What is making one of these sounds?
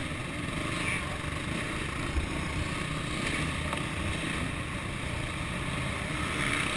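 A dirt bike engine revs and roars close by.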